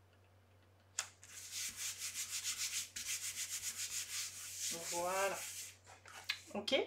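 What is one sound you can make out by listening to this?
A hand rubs briskly back and forth over a sheet of paper.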